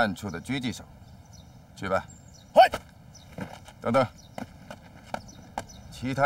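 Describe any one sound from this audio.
A man speaks firmly and clearly, close by.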